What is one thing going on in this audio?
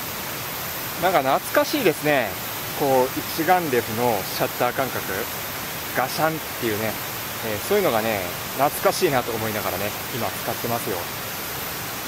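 A man speaks calmly to a nearby listener, outdoors.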